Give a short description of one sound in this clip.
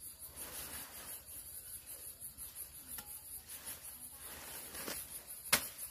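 Leafy plants rustle as they are pulled from the ground.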